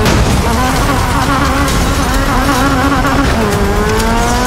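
Car tyres screech in a skid.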